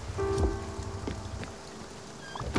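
Quick light footsteps patter as a cartoon character runs.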